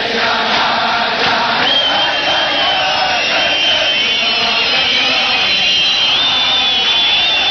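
A large crowd of men sings loudly together.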